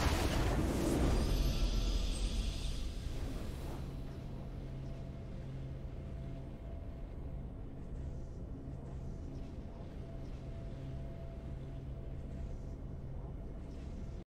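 A triumphant fanfare swells and then settles into soft, steady music.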